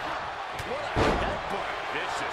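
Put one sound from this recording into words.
A heavy body slams onto a wrestling mat with a loud thud.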